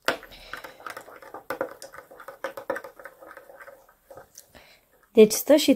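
A spoon stirs and clinks against a glass.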